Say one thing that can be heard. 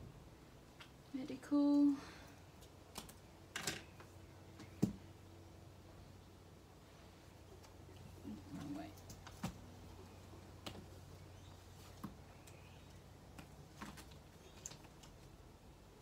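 Hands pick up and set down objects with light knocks.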